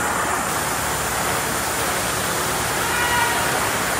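An ice resurfacing machine hums steadily as it drives across the ice.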